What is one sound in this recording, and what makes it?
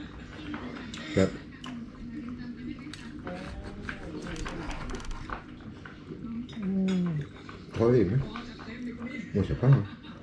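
A knife scrapes and clinks on a board while cutting meat.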